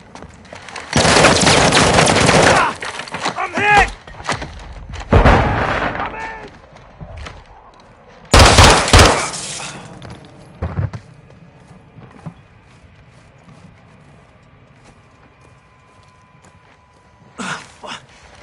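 Gunfire bursts loudly in rapid volleys indoors.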